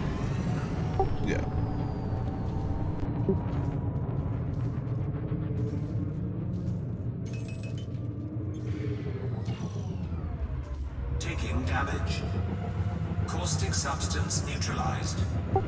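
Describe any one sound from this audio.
A spaceship engine hums with a steady, low rumble.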